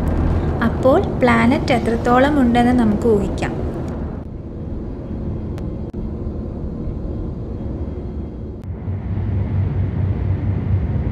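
A spacecraft engine hums with a low, steady rumble.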